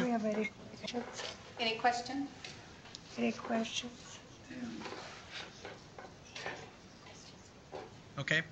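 An elderly man speaks calmly in a small room.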